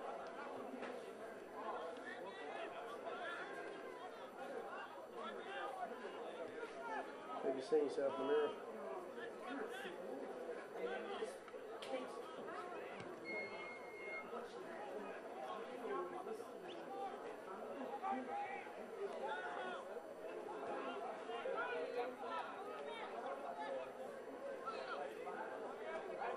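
Men shout to each other across an open playing field.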